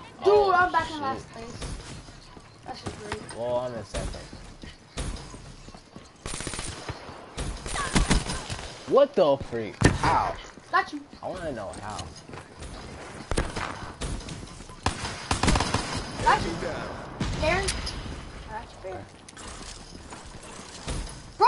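Guns fire in quick bursts.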